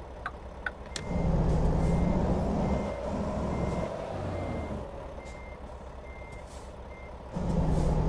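A reversing truck beeps repeatedly.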